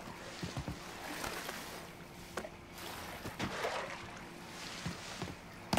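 Tall grass rustles as a man pushes through it.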